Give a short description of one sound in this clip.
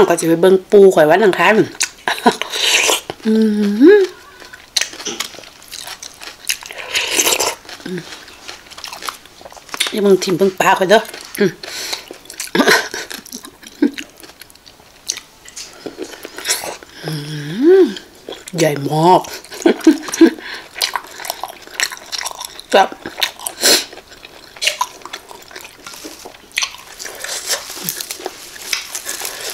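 A young woman slurps and chews food noisily close to a microphone.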